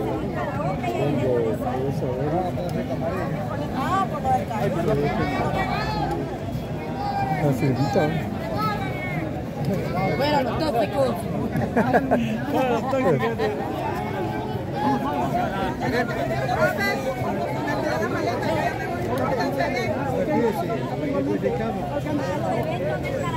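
A crowd of men and women chatters all around, close by, outdoors.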